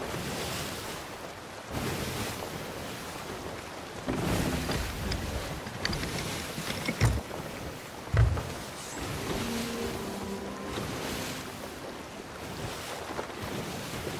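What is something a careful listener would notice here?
Waves wash and surge against a wooden ship.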